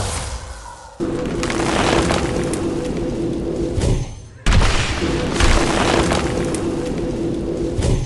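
Magical spell effects whoosh and crackle.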